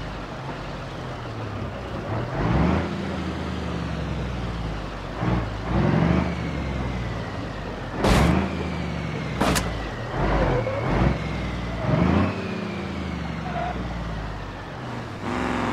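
Wooden logs creak and thud under heavy tyres.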